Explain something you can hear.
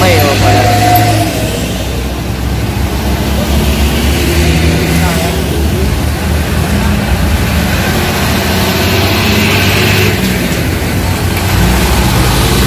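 A bus engine idles with a low, steady rumble.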